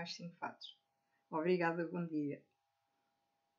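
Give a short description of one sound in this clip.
An elderly woman speaks calmly and close to the microphone.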